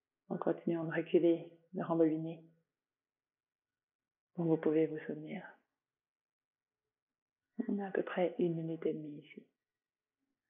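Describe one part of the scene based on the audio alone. A woman speaks calmly and softly, close by, with long pauses.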